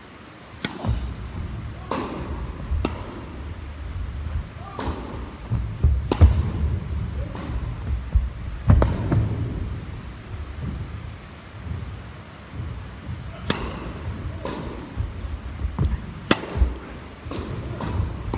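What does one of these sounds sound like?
Tennis balls are struck with sharp pops, echoing in a large indoor hall.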